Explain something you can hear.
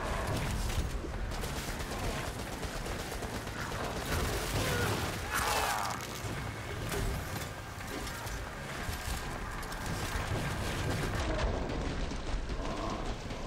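Monsters roar and screech.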